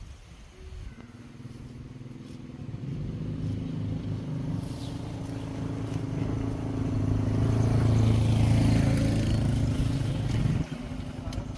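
A motorbike engine hums as it approaches and then idles.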